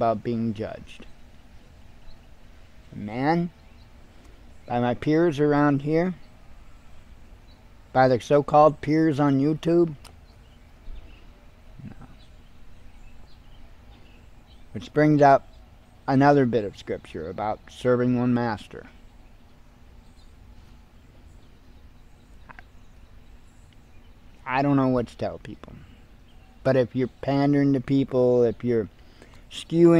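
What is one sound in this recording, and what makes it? A middle-aged man speaks calmly and expressively close to a microphone, with short pauses.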